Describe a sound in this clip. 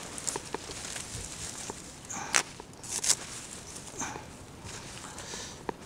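Roots knock and thud as they are dropped into a plastic crate.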